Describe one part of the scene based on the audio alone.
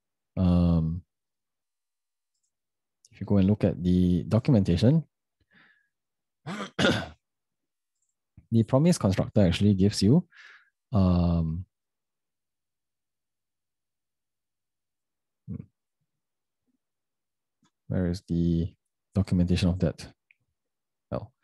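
A young man talks calmly and closely into a microphone, with pauses.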